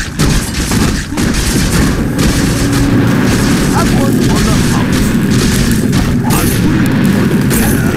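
Weapons clash and strike repeatedly in a fight.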